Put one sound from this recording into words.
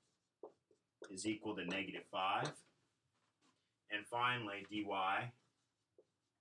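A middle-aged man speaks calmly and clearly close by.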